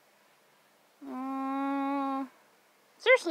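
A young woman sings a steady held note.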